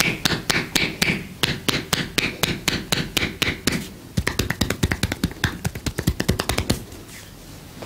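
Hands rapidly chop and slap against a bare back.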